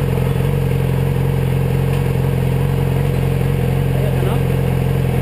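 An inline-four sport bike engine idles.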